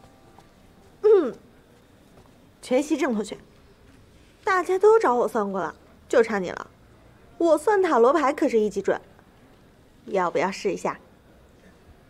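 A young woman speaks playfully nearby.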